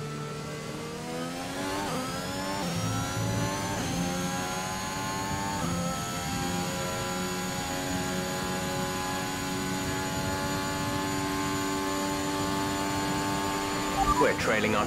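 A racing car engine screams, climbing in pitch through the gears.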